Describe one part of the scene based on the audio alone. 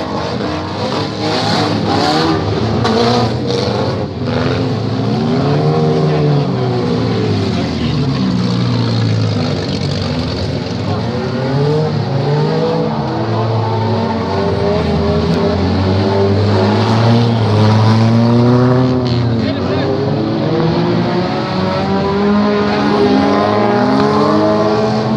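Several car engines roar and rev up and down close by.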